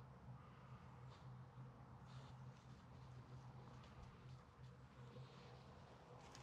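A dog's paws rustle through dry leaves.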